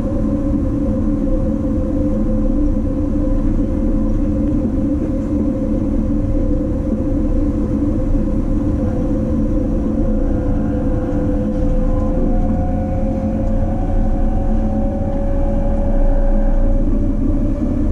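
A train's motor hums with a steady whine that slowly rises in pitch.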